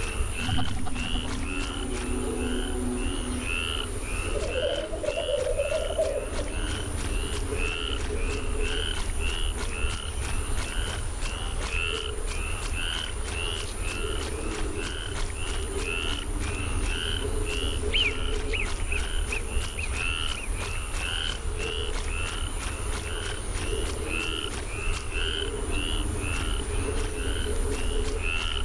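Footsteps splash steadily through shallow water.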